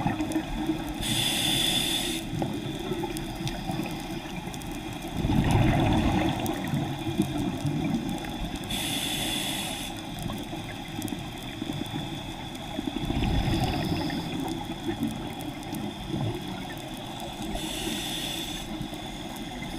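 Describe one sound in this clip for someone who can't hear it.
A diver breathes in through a regulator with a hissing rush of air.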